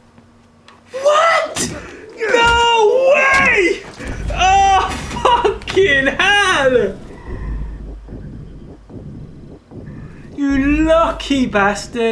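A man exclaims and shouts excitedly into a microphone.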